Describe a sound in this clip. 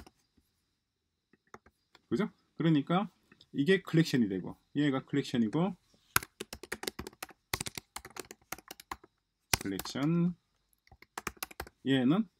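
A keyboard clicks as keys are typed.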